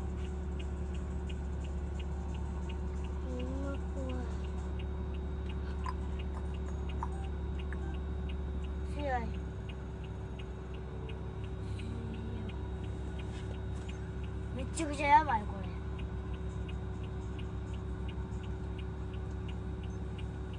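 A vehicle engine idles nearby with a steady low hum.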